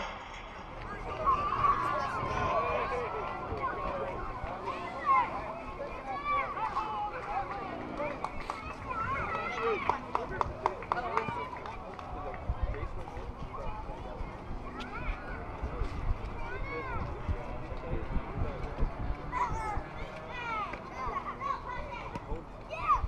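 Young players shout and call out across an open ball field.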